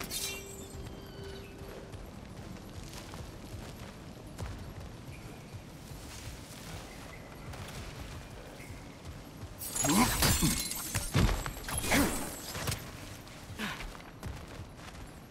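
Heavy footsteps thud on stone.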